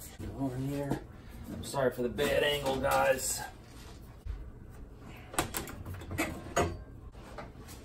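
A metal panel scrapes and clanks as it is lifted and set down.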